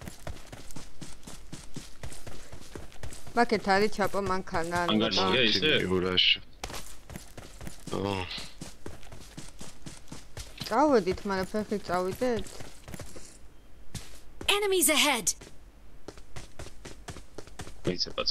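Footsteps patter quickly over grass and gravel.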